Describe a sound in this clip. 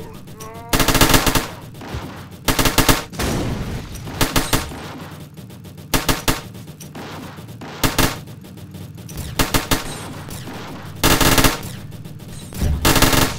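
Machine guns fire in short, loud rattling bursts, again and again.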